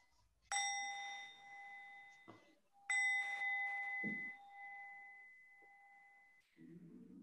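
A small bell rings twice, clear and ringing, and slowly fades.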